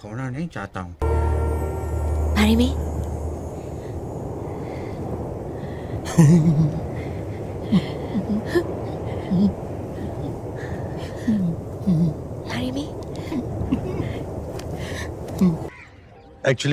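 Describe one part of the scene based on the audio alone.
A man speaks with emotion.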